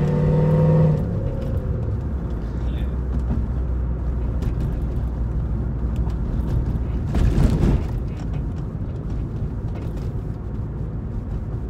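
A car engine drones steadily while driving.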